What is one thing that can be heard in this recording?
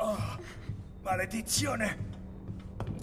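An elderly man groans and curses in strain.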